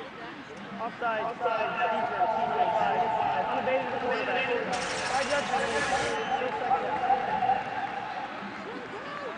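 A man announces a penalty over a stadium loudspeaker, echoing.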